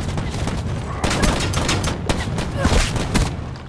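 Rapid gunfire rattles in close bursts.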